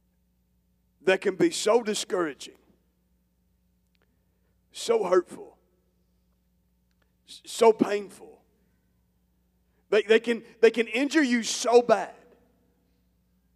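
A man speaks calmly into a microphone through loudspeakers, pausing between phrases.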